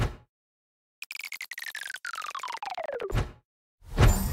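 A falling electronic glide plays as a game character slides down a bonus track.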